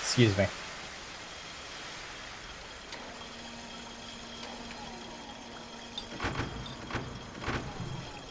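Short electronic game sounds thud and chime.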